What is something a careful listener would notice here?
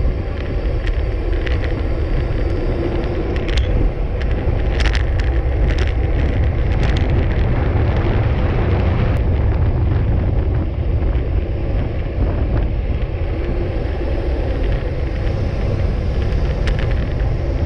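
A bicycle rattles over bumps in the road.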